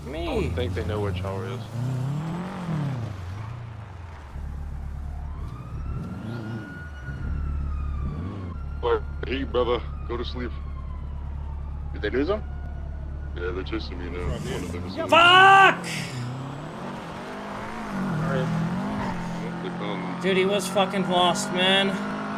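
A car engine revs and idles.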